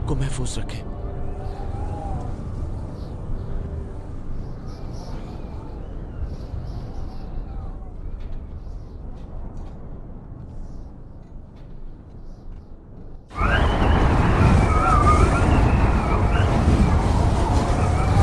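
Strong wind gusts across open snow outdoors.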